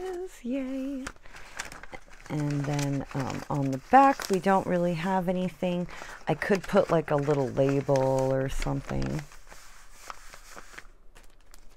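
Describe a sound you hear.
Paper rustles and crinkles as it is folded and pressed flat.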